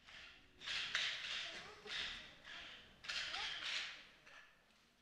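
Wooden sticks clack together in a rhythm.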